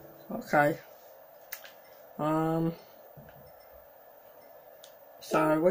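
A short electronic chime sounds from a television speaker several times.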